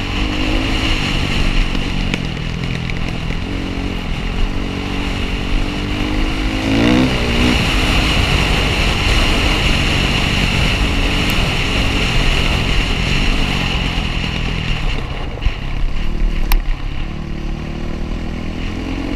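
A dirt bike engine revs and drones up close, rising and falling in pitch.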